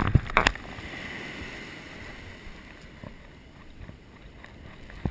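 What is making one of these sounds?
Waves wash onto a sandy shore.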